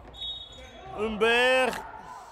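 A young woman shouts loudly in a large echoing hall.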